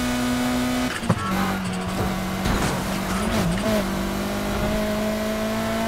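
Tyres screech as a car drifts through a turn.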